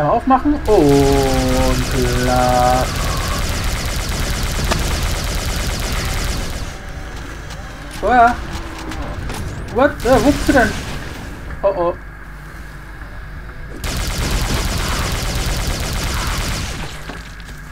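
Energy guns fire in rapid, roaring bursts.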